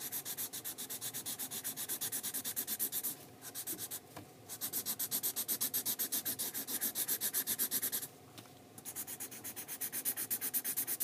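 A marker squeaks rapidly back and forth across paper.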